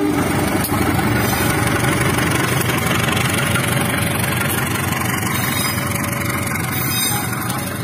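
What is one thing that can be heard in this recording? Train wheels clatter over the rails as carriages pass.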